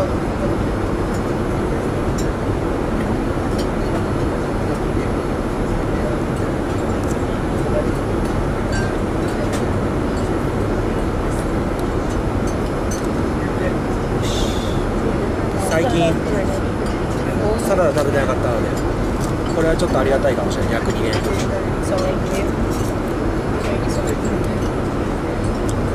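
A steady low roar of a jet's engines fills the cabin.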